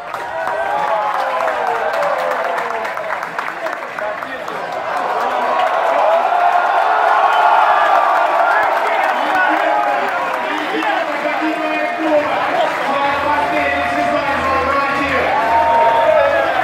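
A large crowd cheers and sings loudly through a television speaker.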